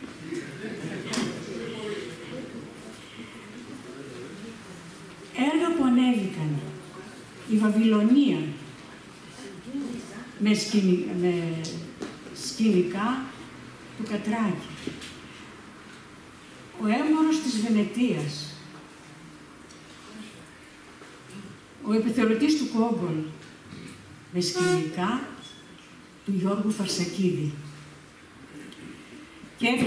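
An elderly woman reads aloud slowly into a microphone, with pauses.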